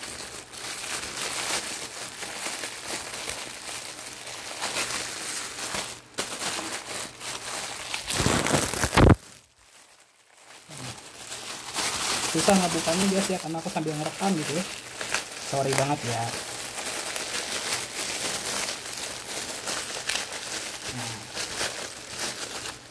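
Plastic wrapping crinkles and rustles as hands handle it up close.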